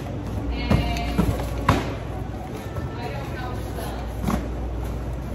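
Cardboard boxes thump and scrape as they are dropped and handled.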